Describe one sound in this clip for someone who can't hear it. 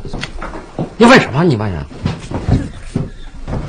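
An elderly man speaks firmly, close by.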